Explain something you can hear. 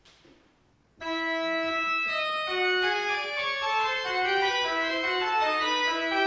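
An organ plays a slow, ringing tune in an echoing hall.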